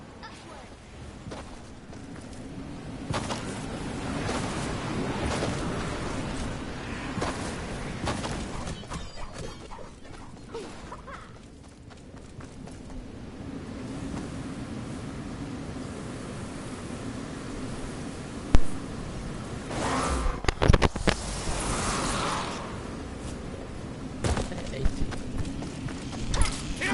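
Footsteps thud on grass as a character runs.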